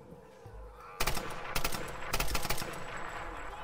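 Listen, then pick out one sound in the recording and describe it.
A rifle fires shots in quick succession.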